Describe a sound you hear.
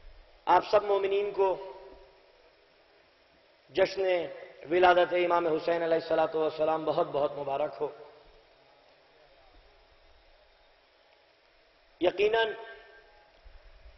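A man speaks forcefully into a microphone, in bursts with long pauses, heard through loudspeakers with echo.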